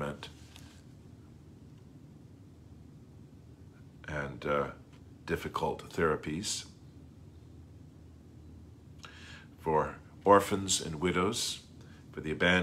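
A middle-aged man reads out calmly, close to a microphone, with pauses.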